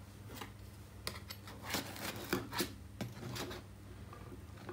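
A knife scrapes along the inside of a metal baking tin.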